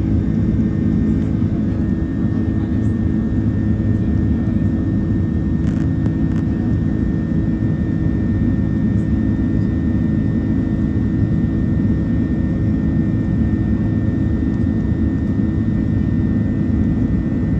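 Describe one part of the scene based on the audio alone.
An aircraft engine drones steadily from inside the cabin.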